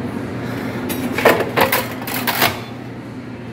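Metal parts click as a hand works at an espresso machine's group head.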